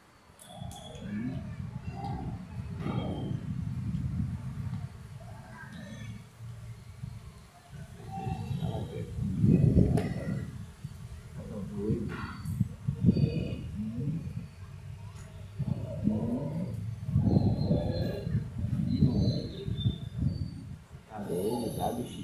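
An elderly man talks in a low voice close by.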